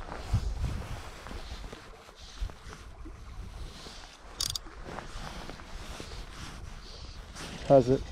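A fishing line rustles softly as a hand pulls it in.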